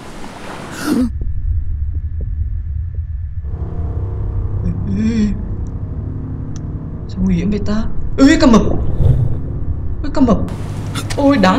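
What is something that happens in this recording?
A low muffled underwater rumble drones steadily.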